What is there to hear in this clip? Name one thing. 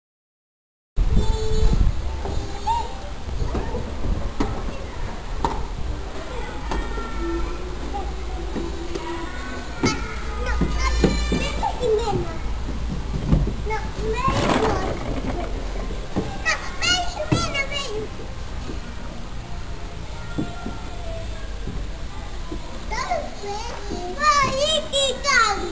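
Young children chatter and call out with high voices nearby, outdoors.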